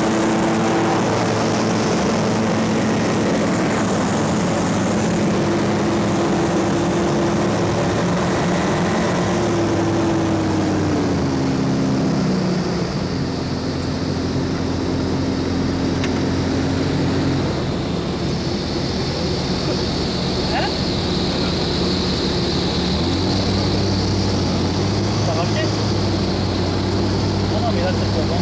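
Wind rushes past an open cockpit.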